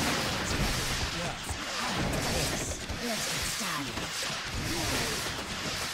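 A building collapses with a crash.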